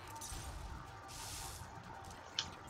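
An electric spell crackles and fizzes.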